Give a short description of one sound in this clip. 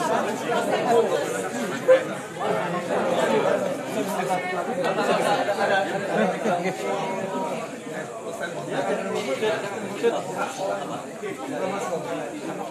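A crowd of men and women chatter and talk loudly all around, close by.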